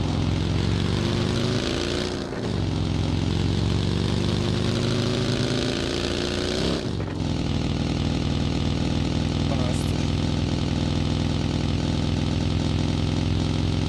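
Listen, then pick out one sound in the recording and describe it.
A buggy engine revs loudly, rising in pitch as it speeds up and dropping at gear shifts.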